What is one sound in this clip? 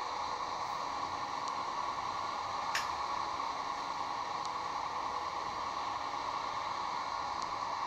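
A truck engine hums steadily.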